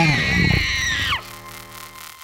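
A large creature lets out a loud, harsh roar that cuts off abruptly.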